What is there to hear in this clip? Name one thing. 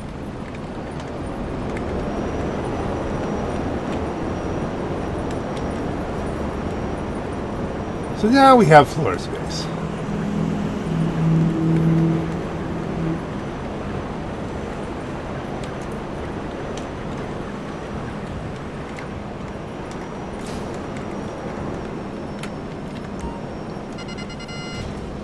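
A jetpack's thrusters roar steadily.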